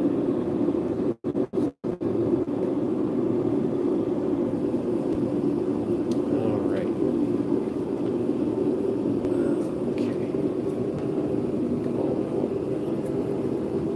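A gas forge roars steadily.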